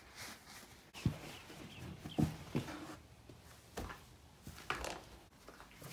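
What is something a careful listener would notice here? A car seat thumps and rubs as it is moved.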